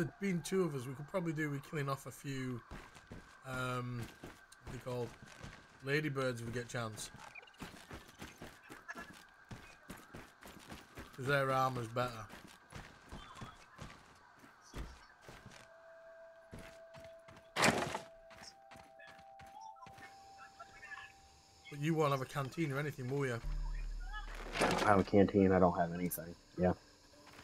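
A young man talks with animation into a microphone, close up.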